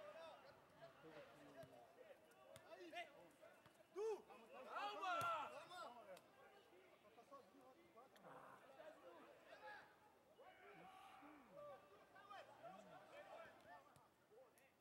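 Men shout to each other across an open field.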